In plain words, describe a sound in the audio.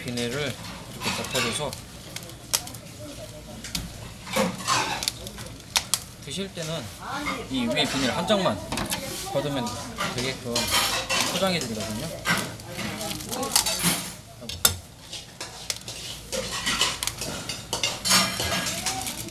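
Plastic film crinkles and rustles as hands handle it.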